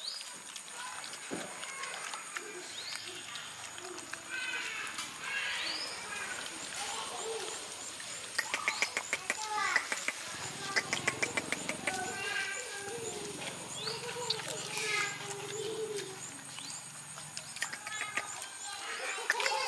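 Dogs chew and smack their lips wetly as they eat.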